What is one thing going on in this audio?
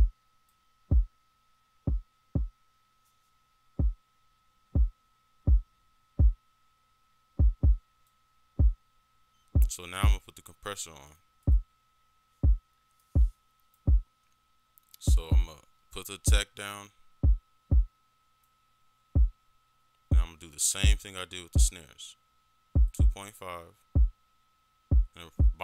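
A deep electronic kick drum thumps in a steady beat.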